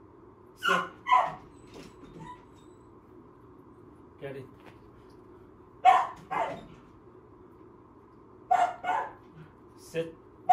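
A small dog barks sharply in short bursts nearby.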